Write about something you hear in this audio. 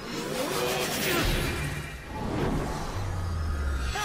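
Magic blasts whoosh and crackle in bursts.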